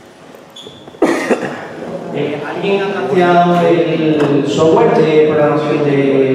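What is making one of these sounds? A young man speaks calmly into a microphone in an echoing hall.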